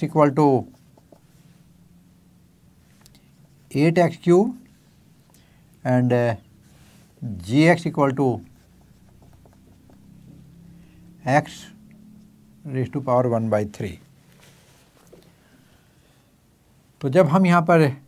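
An elderly man speaks calmly in short phrases, close to a microphone.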